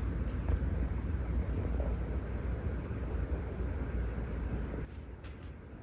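A dog breathes heavily in its sleep.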